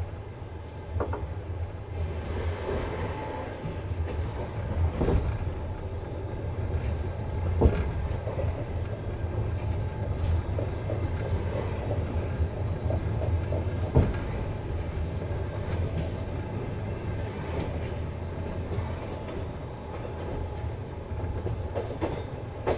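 Train wheels clack over rail joints now and then.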